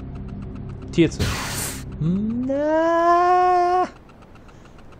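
A heavy sliding door opens with a rising mechanical whine.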